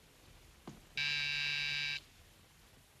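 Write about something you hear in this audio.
A doorbell rings.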